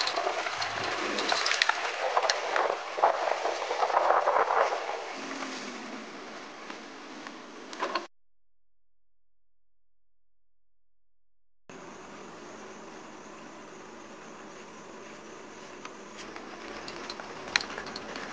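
Tyres crunch and rattle over loose stones.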